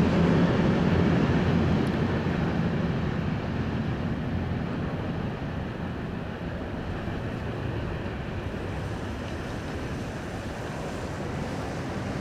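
A freight train rumbles along the tracks and slowly fades into the distance.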